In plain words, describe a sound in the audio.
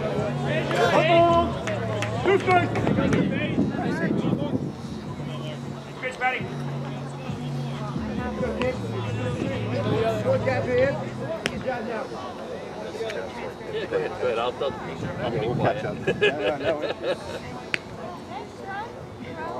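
Young men shout and chatter outdoors on an open field.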